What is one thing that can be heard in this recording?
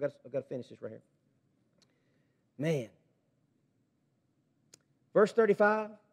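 A man speaks slowly and with feeling into a microphone.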